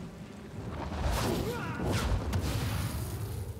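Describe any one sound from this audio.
A fireball whooshes.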